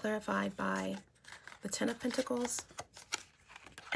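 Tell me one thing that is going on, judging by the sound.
Playing cards rustle and slap as they are shuffled.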